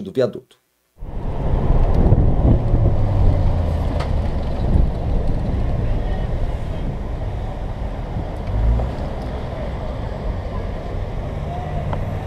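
A car engine hums as the car drives.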